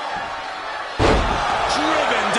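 A body slams hard onto a wrestling ring mat with a heavy thud.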